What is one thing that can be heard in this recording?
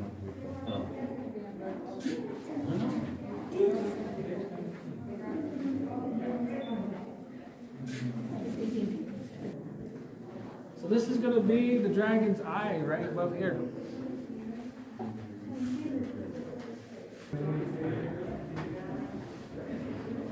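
Men and women talk casually nearby.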